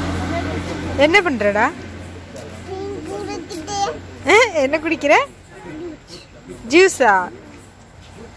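A young boy talks and laughs close by in a high voice.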